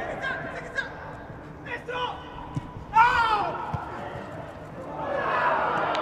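Male footballers shout to each other across a pitch in an empty stadium.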